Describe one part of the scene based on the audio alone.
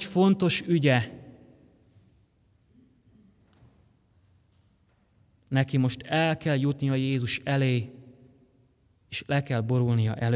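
A young man speaks calmly and clearly into a microphone in an echoing hall, pausing between phrases.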